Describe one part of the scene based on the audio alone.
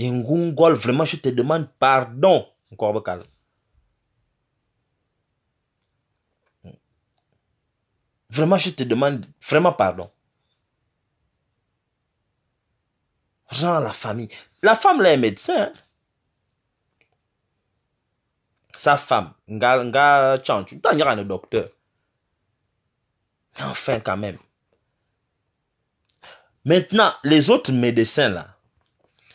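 A man speaks close to the microphone in short bursts with pauses.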